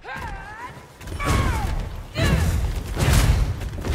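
Swords clash and thud in a fight.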